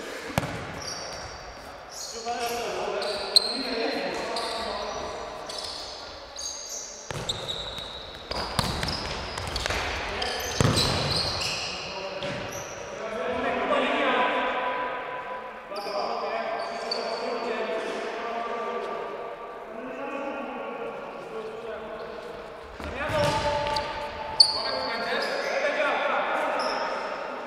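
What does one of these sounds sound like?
Men shout to each other during a game, with echo.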